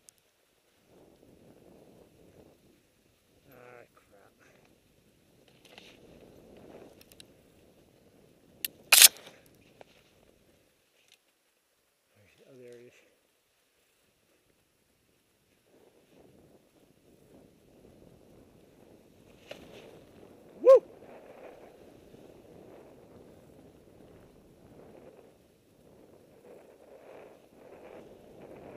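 Skis hiss and swish over soft snow.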